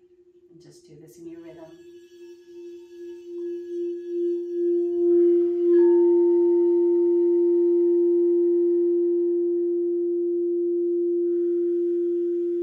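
A singing bowl swells louder as a mallet is rubbed around its rim.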